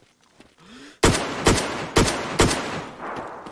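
Gunshots ring out in quick succession, loud and echoing.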